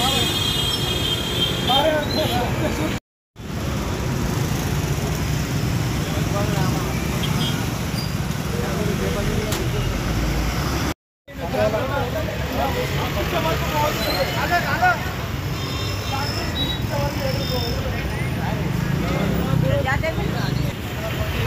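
Several men talk loudly and agitatedly nearby.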